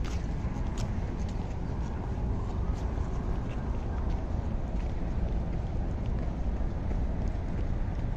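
Runners' footsteps patter on asphalt.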